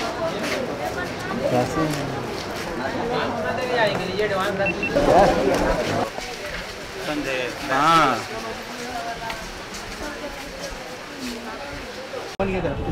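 A crowd murmurs in a busy market street.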